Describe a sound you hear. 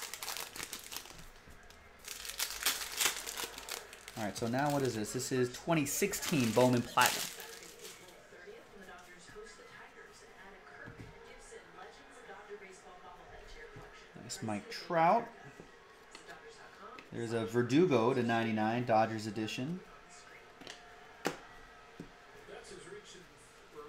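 Trading cards rustle and slap as they are shuffled by hand.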